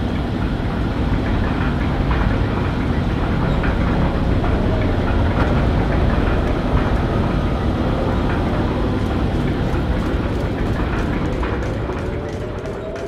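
A cable lift rumbles as it moves.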